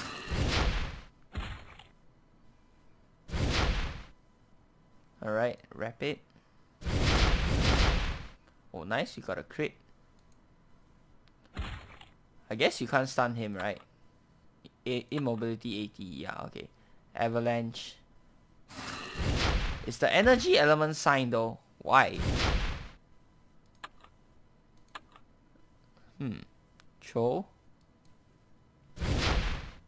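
Game attack effects whoosh and crash in short bursts.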